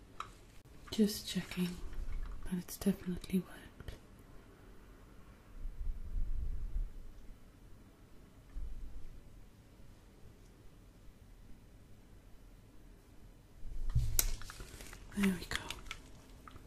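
A young woman whispers softly close to the microphone.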